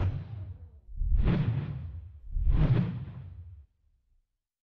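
Metal claws swing and strike with heavy whooshing thuds.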